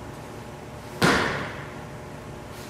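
A foot stamps sharply on a mat, echoing through a large hall.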